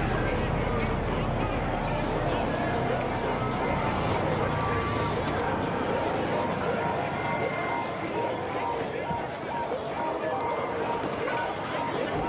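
A crowd of people chatters and murmurs all around.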